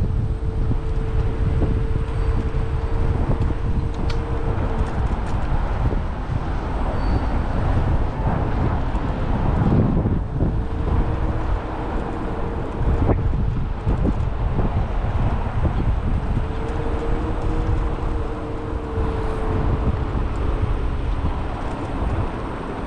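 Wind rushes and buffets loudly past a moving bicycle.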